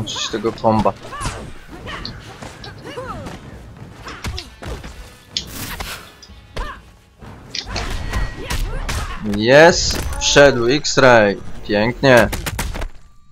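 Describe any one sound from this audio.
Blows land with sharp thuds and smacks in a fast fight.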